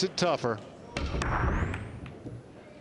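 A cue ball smashes into a rack of billiard balls with a sharp crack.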